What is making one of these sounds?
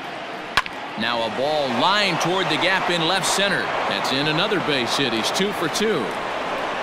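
A stadium crowd cheers loudly.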